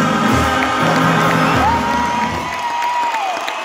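Loud music plays through large loudspeakers.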